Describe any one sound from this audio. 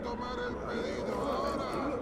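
Liquid pours from a bottle into a metal cup.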